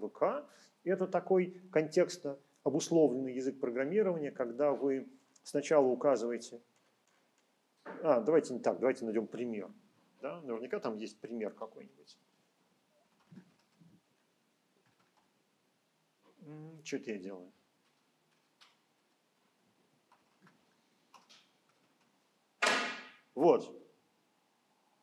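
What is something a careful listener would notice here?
A middle-aged man speaks calmly in short phrases, close to a microphone.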